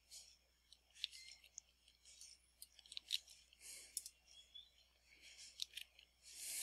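A video game pickaxe digs at blocks with short crunching hits.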